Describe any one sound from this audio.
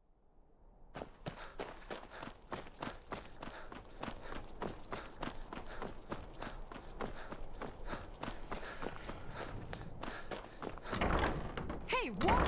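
Footsteps walk briskly over stone paving.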